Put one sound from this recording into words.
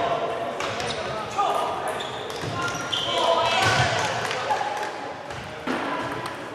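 Ping-pong balls tap sharply on tables and paddles in a large echoing hall.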